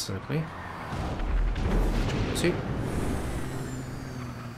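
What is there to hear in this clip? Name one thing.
A jet booster blasts with a deep rumble.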